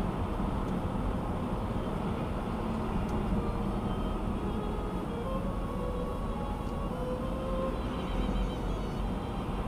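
Tyres roll steadily on a highway.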